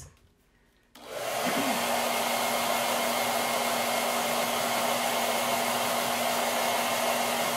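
A hair dryer blows with a loud, steady whoosh and hum.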